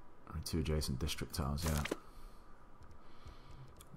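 A game menu closes with a soft click.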